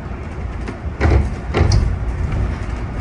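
A bus rattles and thumps over bumps in the road.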